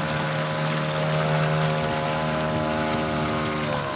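Water splashes and churns beside a moving boat.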